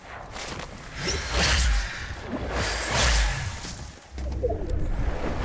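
Wind rushes loudly past during a fall through the air.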